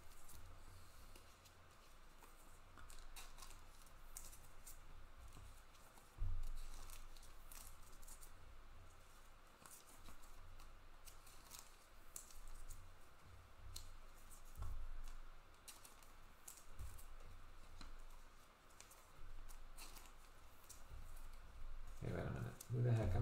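Trading cards shuffle and rustle in a hand.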